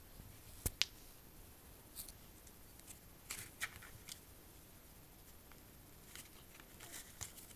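A cat plays with a plastic cord, making light clicks and rustles.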